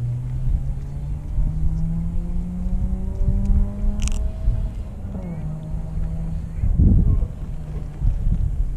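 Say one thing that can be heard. Wind buffets and rumbles outdoors over open water.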